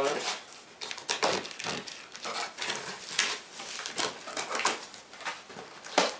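Packing tape rips off a cardboard box.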